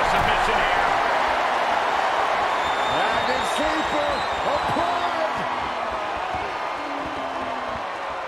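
A large crowd cheers and roars loudly, slowly easing off.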